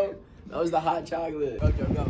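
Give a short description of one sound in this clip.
An older man laughs close by.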